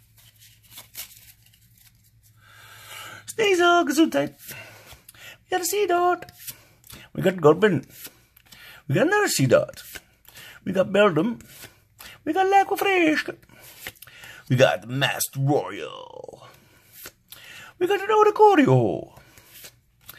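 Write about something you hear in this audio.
Playing cards slide against each other.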